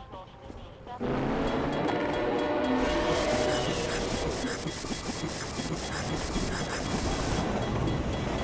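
Flames roar loudly.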